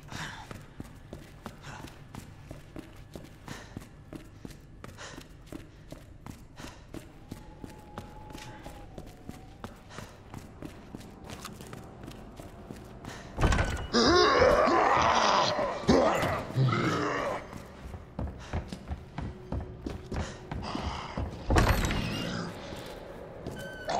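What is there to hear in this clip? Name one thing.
Footsteps thud steadily on hard floors and stairs.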